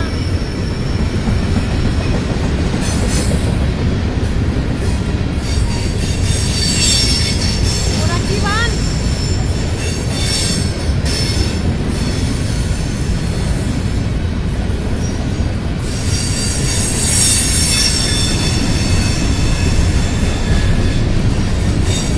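A freight train rushes past close by with a loud, steady rumble.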